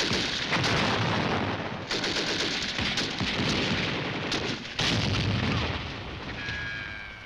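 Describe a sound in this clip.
Rifles and a machine gun fire in rapid bursts outdoors.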